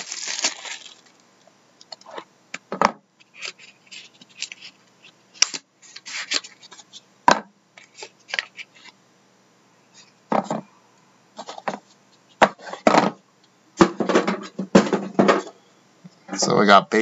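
Cardboard boxes scrape and rustle as they are opened and handled.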